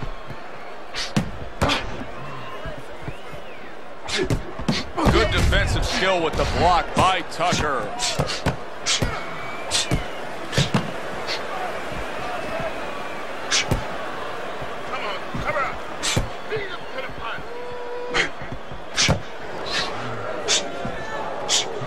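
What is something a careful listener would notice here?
Gloved punches land with sharp, heavy thuds.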